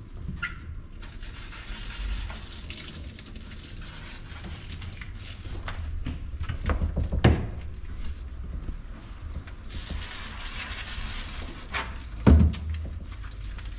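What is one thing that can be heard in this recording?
Water sprays from a shower head onto a dog's wet fur.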